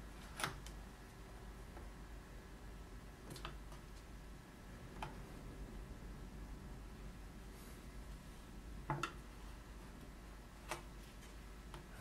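Small metal tools click and tap against a hard surface now and then.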